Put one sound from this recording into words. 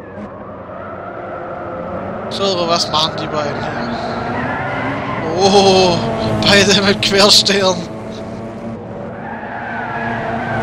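Racing car engines roar and whine as they speed along.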